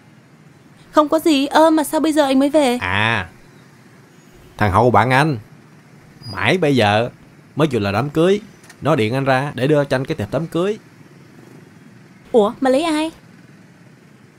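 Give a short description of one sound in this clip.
A woman answers with animation, close by.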